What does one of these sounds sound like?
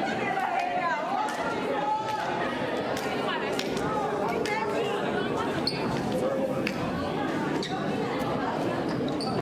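Hands slap together in quick high fives.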